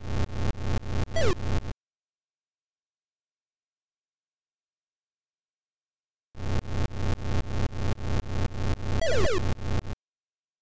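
Electronic pins are knocked down with a short falling tone.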